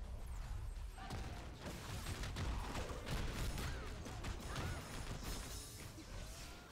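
Explosions boom and crackle in rapid bursts.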